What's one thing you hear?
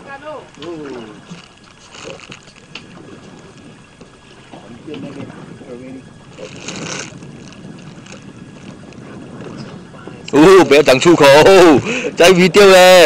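A fishing reel whirs and clicks as line is wound in.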